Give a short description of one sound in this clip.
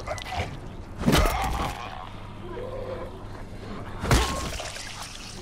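A weapon strikes a body with heavy thuds.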